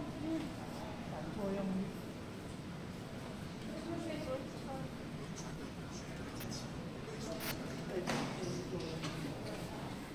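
Children talk quietly nearby.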